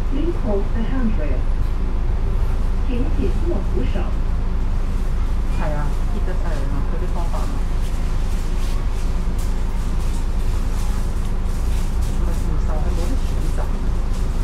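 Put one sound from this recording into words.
A diesel double-decker bus engine rumbles, heard from on board.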